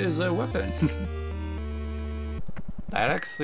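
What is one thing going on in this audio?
Chiptune music plays a short, bright jingle.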